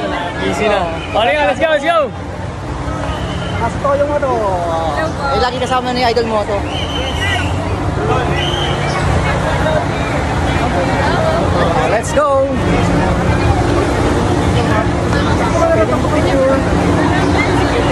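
A crowd murmurs outdoors throughout.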